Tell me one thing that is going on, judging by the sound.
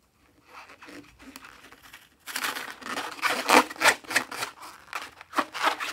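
Fingers squeeze a rubber balloon, making squeaky rubbing sounds.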